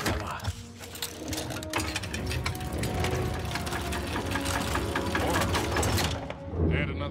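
A large metal mechanism clicks and rattles as it turns.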